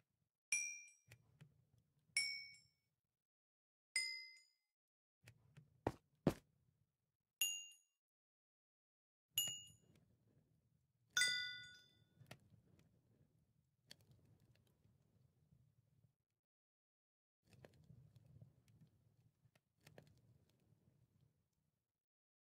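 Footsteps thud softly on stone.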